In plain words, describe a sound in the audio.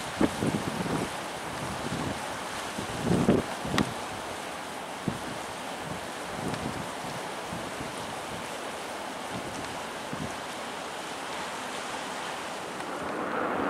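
Wind blows in gusts during a snowstorm.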